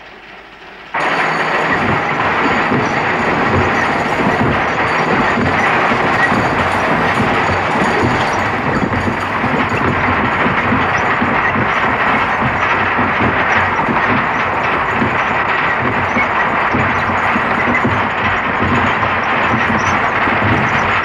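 A large wooden wheel turns with a steady rumbling and creaking.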